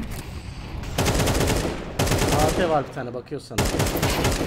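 A rifle fires rapid shots in a game.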